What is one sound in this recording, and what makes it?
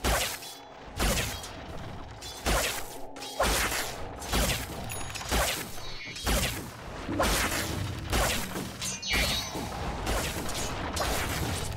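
Magic blasts burst and whoosh again and again in a fantasy battle.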